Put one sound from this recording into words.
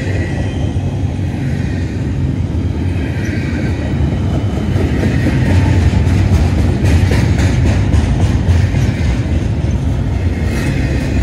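A freight train rumbles past close by, its wheels clattering and squealing on the rails.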